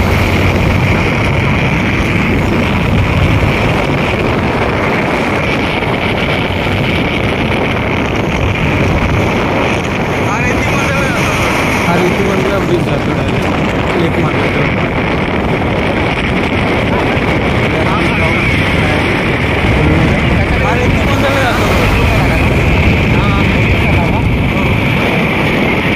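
A vehicle engine hums steadily while driving along a highway.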